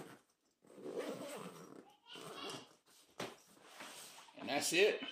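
Hands rustle and shift a fabric backpack.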